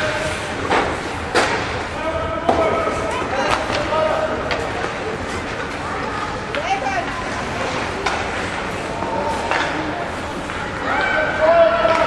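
Spectators shout and cheer in a large echoing rink.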